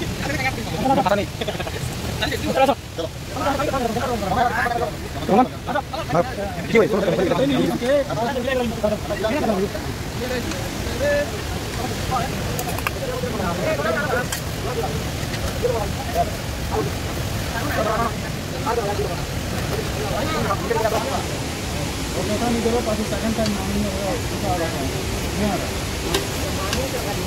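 Young men talk and laugh loudly close by, outdoors.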